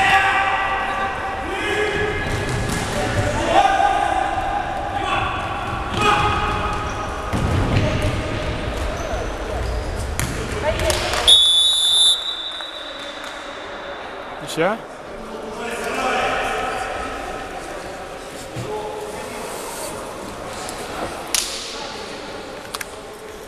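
A ball thumps on a hard floor in a large echoing hall.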